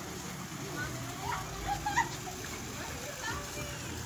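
Water from a small fountain splashes steadily into a pool.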